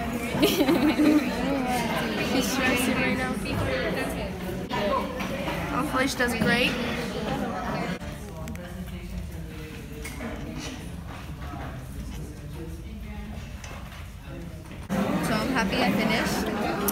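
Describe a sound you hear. A young woman talks and giggles close by.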